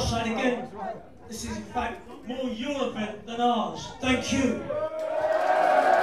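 A man speaks loudly into a microphone, heard through loudspeakers in a hall.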